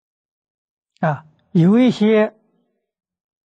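An elderly man speaks calmly and close.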